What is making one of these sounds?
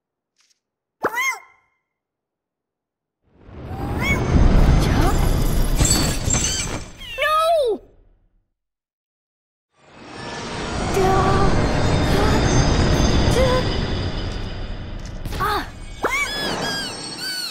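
A small creature chirps with a high, bending cry.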